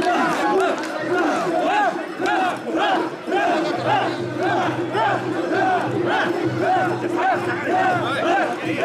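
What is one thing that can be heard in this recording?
A large crowd of men chants loudly in rhythm, close by.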